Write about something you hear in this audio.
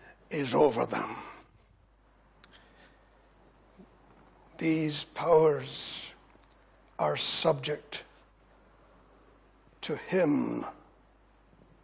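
An elderly man speaks emphatically into a microphone, in short bursts with pauses.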